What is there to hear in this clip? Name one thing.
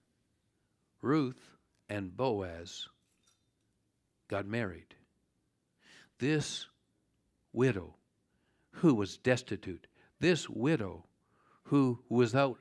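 An older man speaks calmly and clearly, close to a microphone, with pauses.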